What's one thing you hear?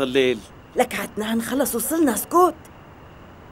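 A woman speaks urgently nearby.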